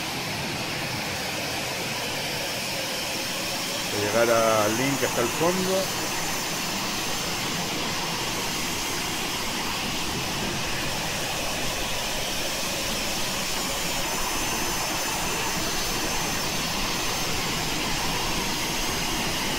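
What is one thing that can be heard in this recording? A jet engine hums steadily as an aircraft taxis.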